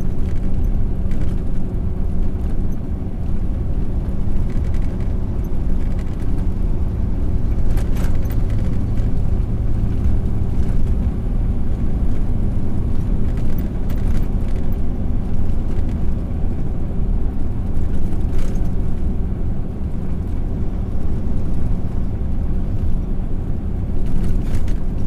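A truck engine rumbles steadily up close.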